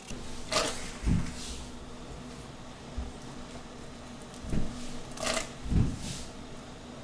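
A knife chops on a cutting board with dull thuds.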